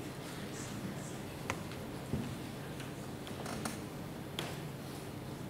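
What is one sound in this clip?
A choir sings softly in a large hall.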